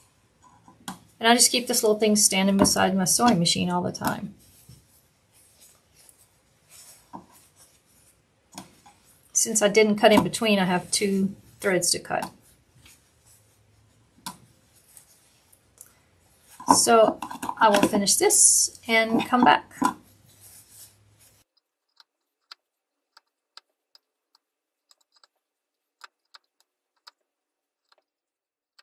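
Fabric pieces rustle softly as hands handle them.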